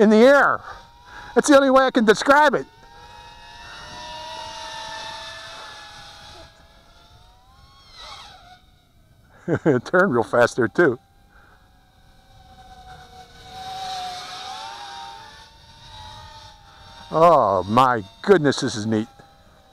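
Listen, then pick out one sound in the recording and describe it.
A small propeller motor whines and buzzes, rising and falling in pitch.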